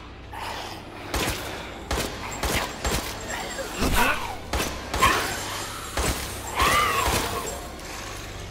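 A creature shrieks and growls.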